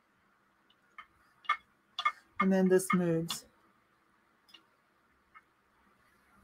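Fingernails click and tap against a glass figurine.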